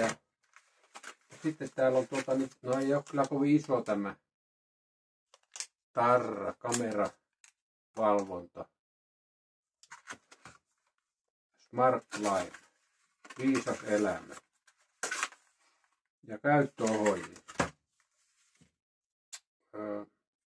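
Paper and cardboard rustle and scrape as a small box is handled and opened.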